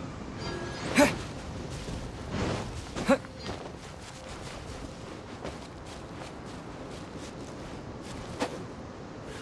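Sword strikes clash with sharp, ringing hits.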